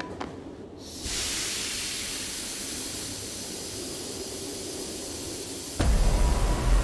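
Gas hisses loudly out of a vent.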